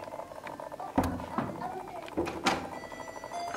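A door lock clicks.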